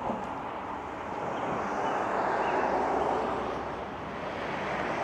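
A car drives past on the road nearby.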